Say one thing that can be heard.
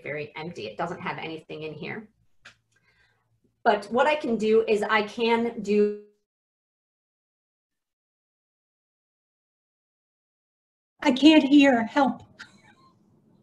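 A woman speaks calmly into a microphone, in pauses.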